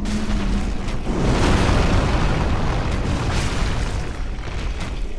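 A huge creature slams down with a loud, deep rumbling crash.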